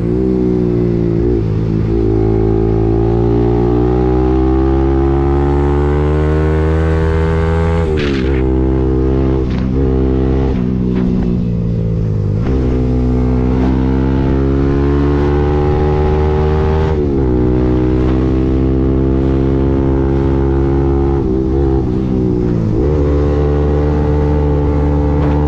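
A motorcycle engine hums close by, rising in pitch as it speeds up and dropping sharply at each gear change.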